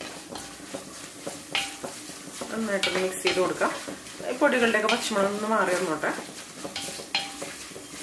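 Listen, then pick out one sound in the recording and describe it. A spoon scrapes and stirs in a clay pot.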